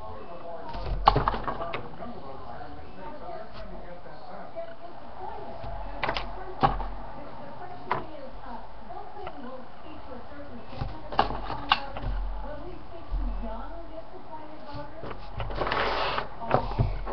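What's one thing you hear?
Small objects knock and tap on a wooden table.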